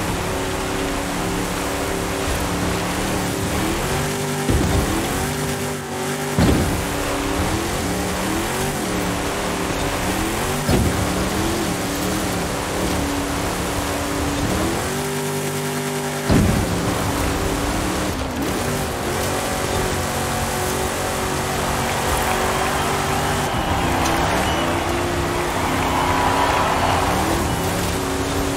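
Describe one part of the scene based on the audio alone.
A truck engine roars steadily, shifting up and down through its gears.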